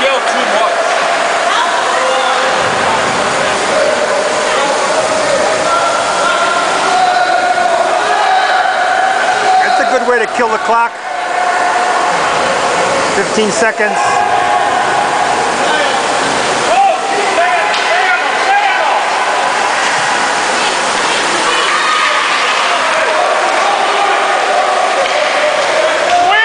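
A crowd of spectators chatters and cheers in a large echoing rink.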